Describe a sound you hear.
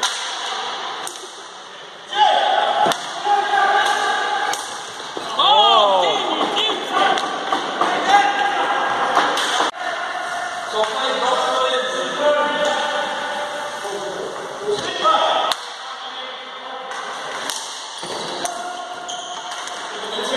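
Hockey sticks clack against a ball and each other in an echoing hall.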